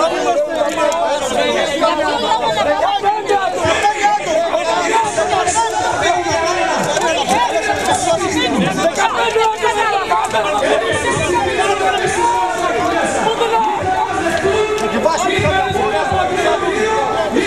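A middle-aged man argues loudly and angrily close by.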